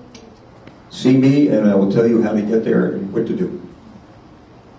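An elderly man speaks loudly through a microphone.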